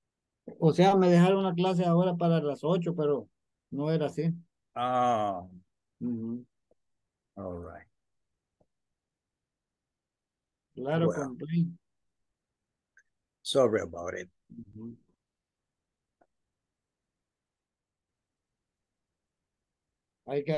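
A middle-aged man speaks calmly in bursts over an online call.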